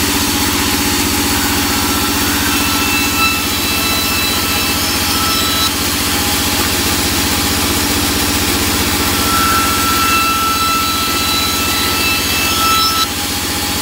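A band saw machine runs with a loud, steady hum and whine.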